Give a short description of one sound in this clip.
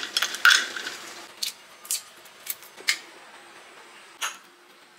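Eggshell cracks and crinkles as fingers peel it.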